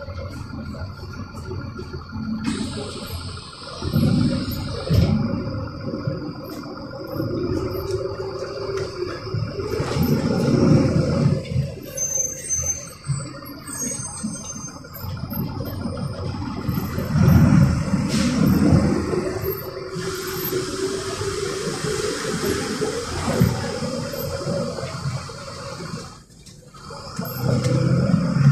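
A vehicle engine hums and rises and falls as it drives.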